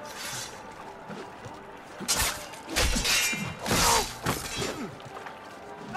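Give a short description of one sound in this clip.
Blades strike and clash in a sword fight.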